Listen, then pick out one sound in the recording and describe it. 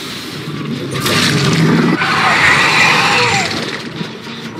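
A generator engine rattles and sputters.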